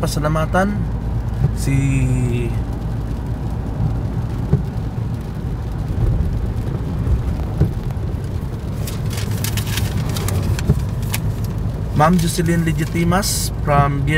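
A car engine hums steadily with tyres hissing on a wet road.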